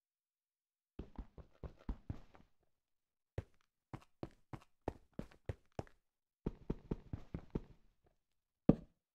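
Blocks thud softly as they are placed in quick succession.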